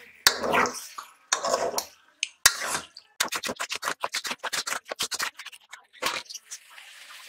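A spoon scrapes and clatters against a metal pot while stirring food.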